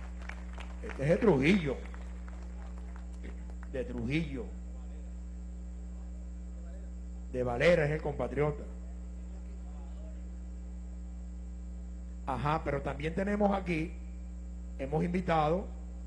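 An elderly man speaks loudly into a microphone through loudspeakers in a large hall, in short bursts.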